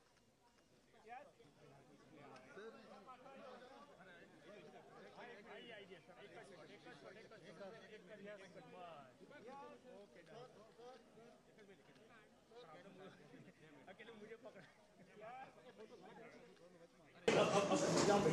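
A crowd of people murmurs and chatters nearby.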